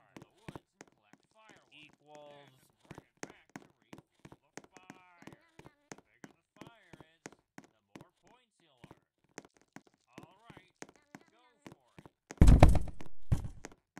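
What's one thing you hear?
Footsteps tap quickly and steadily on the ground.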